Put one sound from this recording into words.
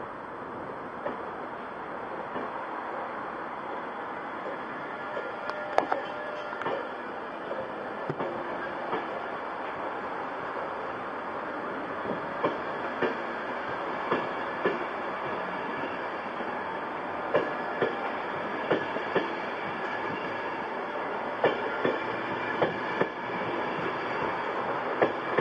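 Train wheels click and clunk over rail joints.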